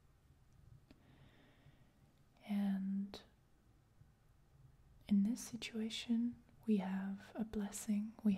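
A card is handled softly between fingers.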